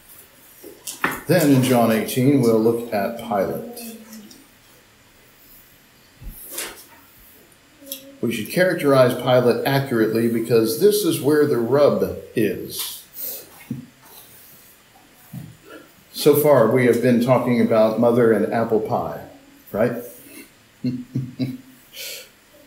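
A man reads aloud calmly through a microphone, pausing between passages.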